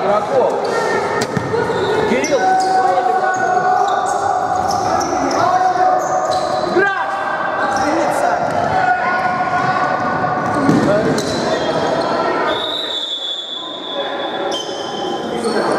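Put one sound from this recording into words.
Sneakers squeak sharply on a hard floor in an echoing hall.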